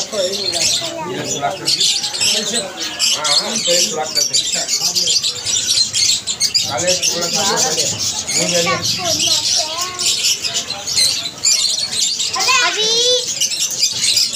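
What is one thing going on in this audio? Pigeons coo nearby.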